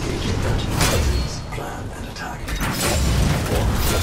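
Blades clash and slash with electric crackles.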